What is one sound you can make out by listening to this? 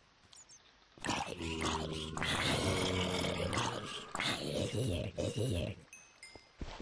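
Zombies groan loudly, low and drawn out.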